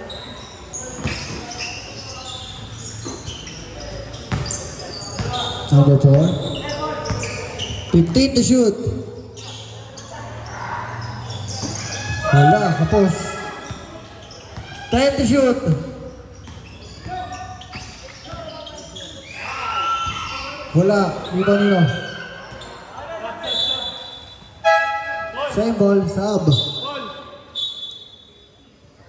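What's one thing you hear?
Young men shout and call out to each other in a large echoing hall.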